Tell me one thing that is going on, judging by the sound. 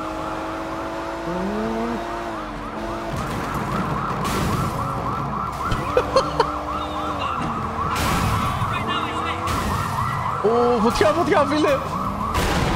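A car engine roars at speed.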